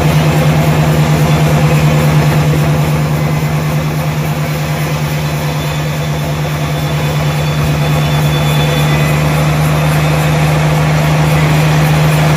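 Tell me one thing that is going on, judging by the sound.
Machinery rumbles and rattles.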